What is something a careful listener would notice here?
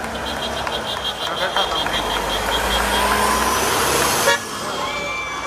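A truck engine rumbles as it passes close by.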